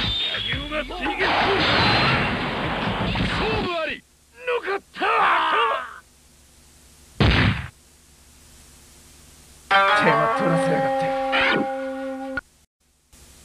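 Swords clash and strike in a fighting game.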